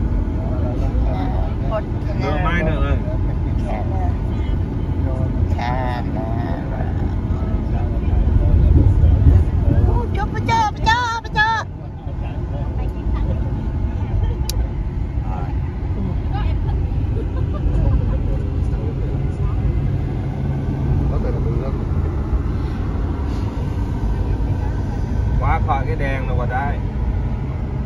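A vehicle's engine hums and its tyres roll steadily on the road.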